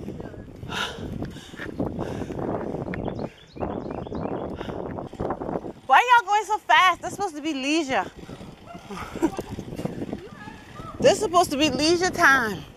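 Bicycle tyres roll and hum along a paved path.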